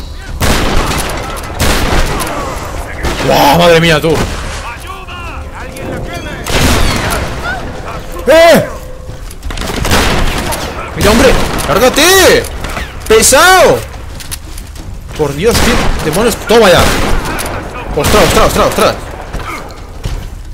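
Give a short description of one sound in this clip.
Shotgun blasts boom loudly again and again.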